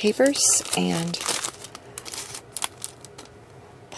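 A plastic sleeve crinkles and rustles.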